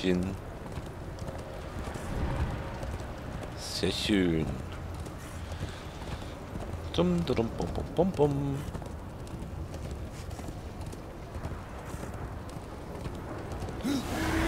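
A horse gallops over stone.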